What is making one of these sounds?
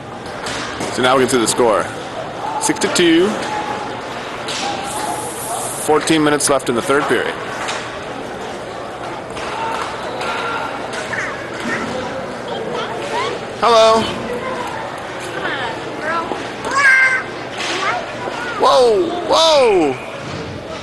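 Young men shout across the rink.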